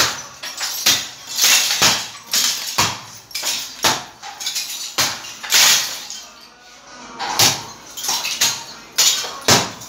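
Broken bricks crash and clatter to the ground.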